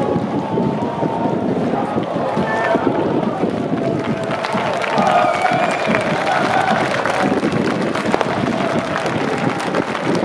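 A large crowd of men cheers and shouts loudly outdoors.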